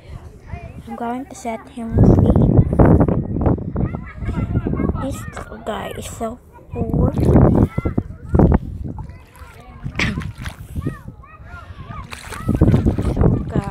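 Shallow water laps and swirls close by.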